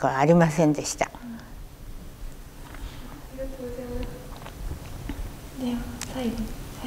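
An elderly woman speaks calmly and softly nearby.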